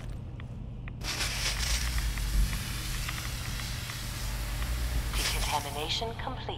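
A hissing spray of mist blows steadily and then stops.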